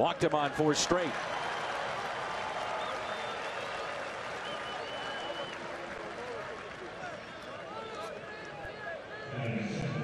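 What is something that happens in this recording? A large crowd cheers outdoors.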